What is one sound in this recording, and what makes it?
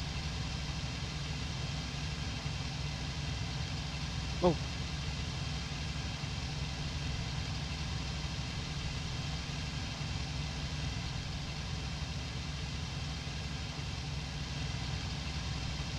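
A propeller engine drones steadily from inside a cockpit.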